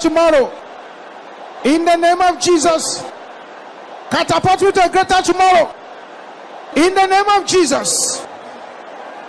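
A man preaches loudly and with animation into a microphone, in short bursts with pauses.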